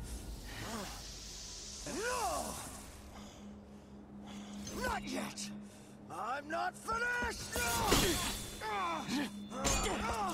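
A young man speaks with a sneer, close and clear.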